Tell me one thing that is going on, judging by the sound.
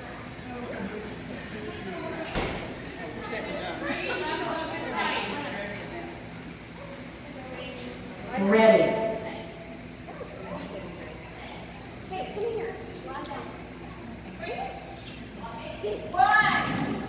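Women talk nearby.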